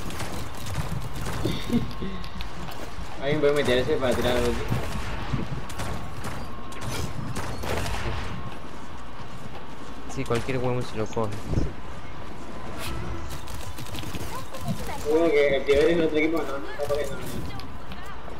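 A weapon fires in rapid bursts with sharp crackling shots.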